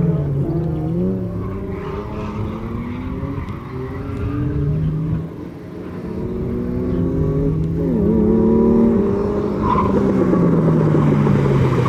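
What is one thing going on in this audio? A car engine roars and revs up and down nearby.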